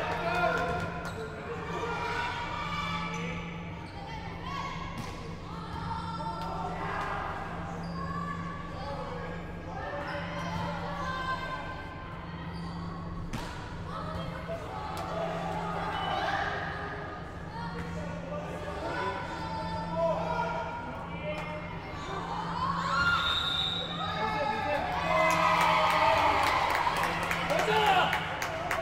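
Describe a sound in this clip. A volleyball is struck and bounces in a large echoing hall.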